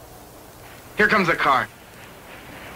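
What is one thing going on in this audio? A cartoon duck quacks loudly in a short burst.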